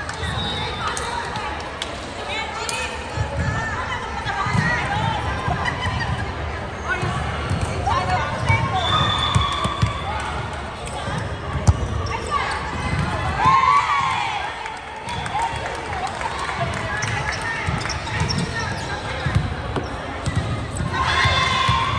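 A volleyball thuds against hands.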